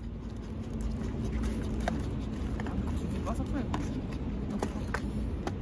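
Plastic spoons tap and scrape against food containers.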